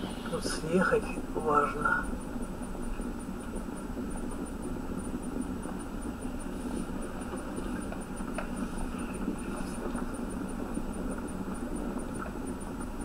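Tyres rumble on the road surface.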